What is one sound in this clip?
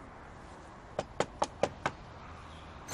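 Knuckles knock several times on a wooden door.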